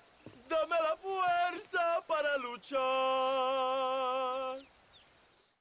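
A woman sings, ending on a long wavering note.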